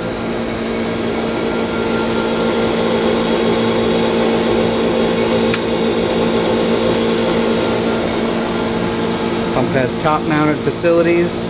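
A vacuum pump machine hums and whirs steadily.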